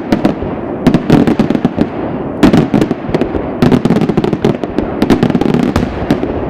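Fireworks crackle and pop rapidly overhead.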